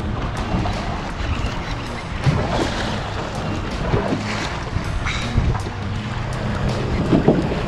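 A boat's motor hums steadily.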